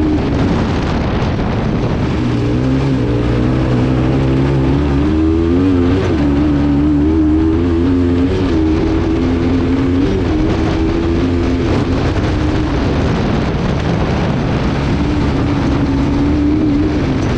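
Tyres rumble and skid over loose dirt.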